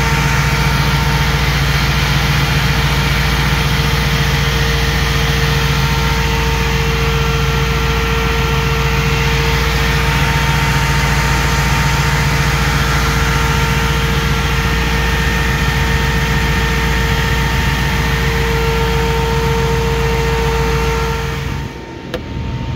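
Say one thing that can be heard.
An engine idles loudly up close with a steady hum and whine.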